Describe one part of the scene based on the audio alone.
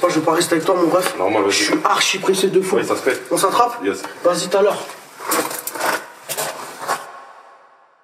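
A young man raps forcefully close by.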